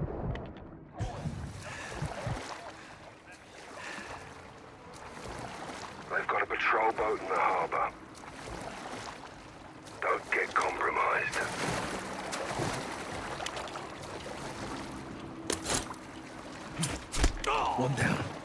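Water laps and splashes softly around a swimmer at the surface.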